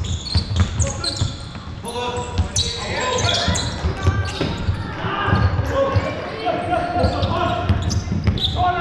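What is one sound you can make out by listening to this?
Players shout and call out across a large echoing hall.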